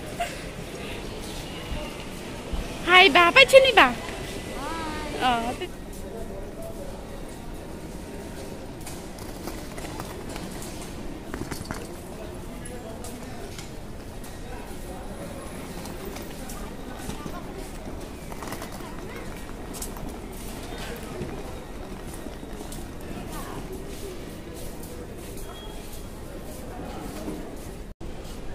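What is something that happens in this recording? Suitcase wheels rumble across a hard floor.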